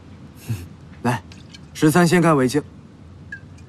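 A young man speaks calmly and firmly up close.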